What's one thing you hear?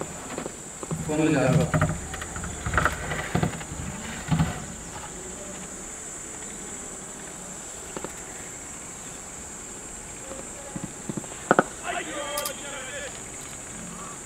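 Young men call out to each other outdoors, a little far off.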